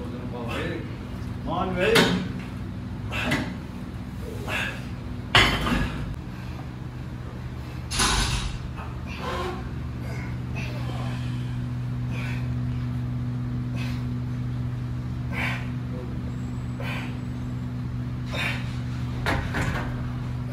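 Weight stacks and machine parts clank and thud with each repetition.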